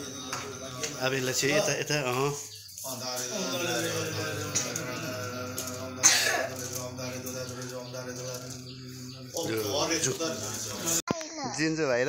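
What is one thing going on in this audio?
Several men chant in low, drawn-out voices nearby.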